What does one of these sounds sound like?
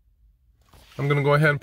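Music plays from car speakers.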